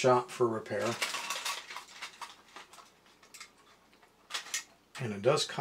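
A small toy mechanism clicks and rattles in the hands.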